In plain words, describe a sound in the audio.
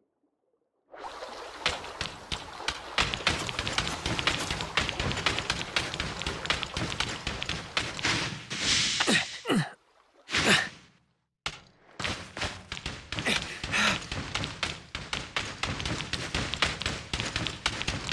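A game character's footsteps patter quickly over sand and rock.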